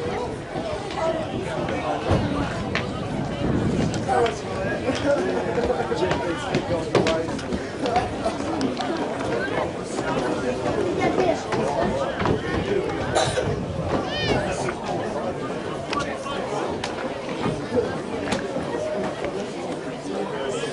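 Spectators chatter and call out from the sideline.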